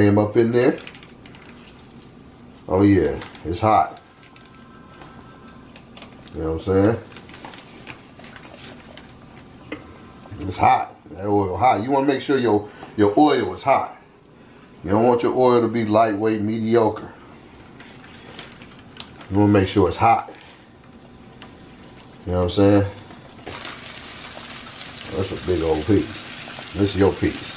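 Hot oil sizzles and bubbles in a pot, growing louder toward the end.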